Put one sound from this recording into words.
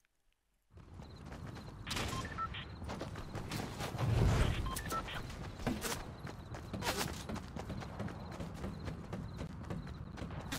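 A young man talks into a microphone close by.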